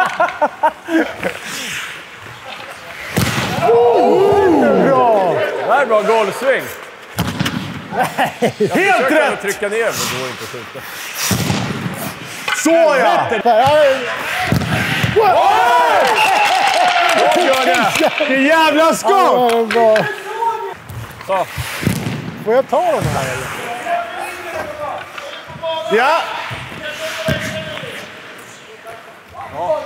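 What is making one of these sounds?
Skate blades scrape and squeal on ice.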